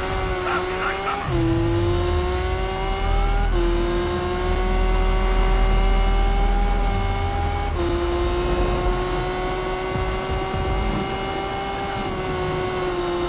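A car engine revs high and drops in pitch with each gear change.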